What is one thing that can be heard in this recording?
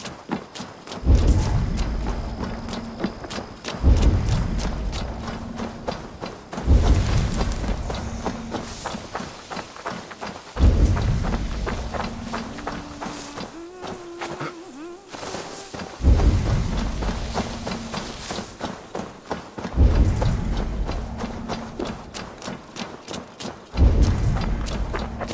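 A deep booming pulse sounds again and again, each one slowly dying away.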